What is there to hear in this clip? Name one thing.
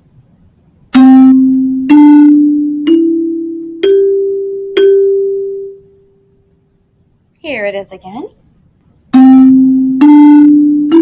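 Single musical notes play one after another, stepping upward in pitch.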